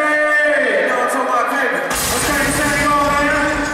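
A second young man raps into a microphone over a loudspeaker.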